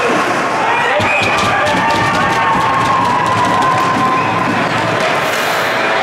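Spectators cheer loudly after a goal.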